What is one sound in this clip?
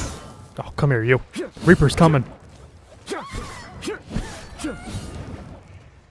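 A laser gun fires several sharp shots.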